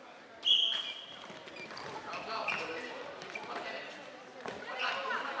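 Floorball sticks clack against the ball.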